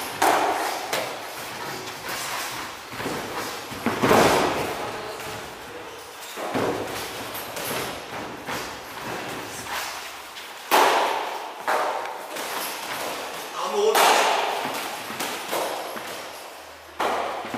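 Boxing gloves thud and slap in sparring, echoing in a large hall.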